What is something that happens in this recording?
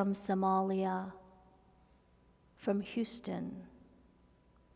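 A woman preaches through a microphone in a large echoing hall.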